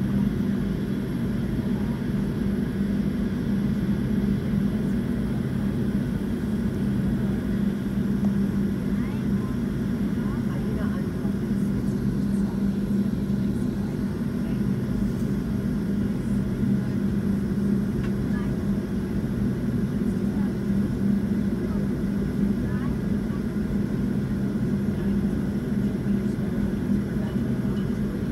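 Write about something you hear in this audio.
A jet airliner's engines hum steadily as the plane taxis.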